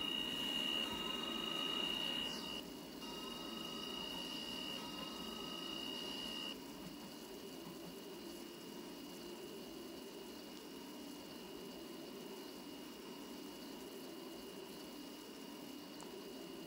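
An electric train rumbles steadily along the tracks.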